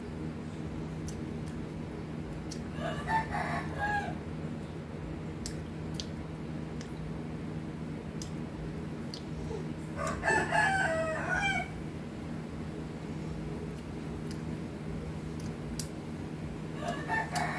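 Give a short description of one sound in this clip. Small shells click and crack between fingers.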